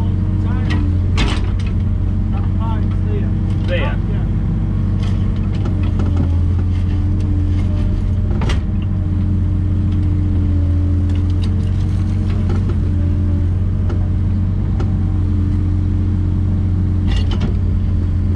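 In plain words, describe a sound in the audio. A digger bucket scrapes and knocks against soil and stones.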